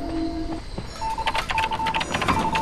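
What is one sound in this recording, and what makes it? A machine clatters and ticks quickly as it is worked on.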